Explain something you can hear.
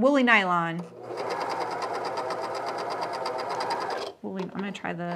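A sewing machine runs fast and steadily.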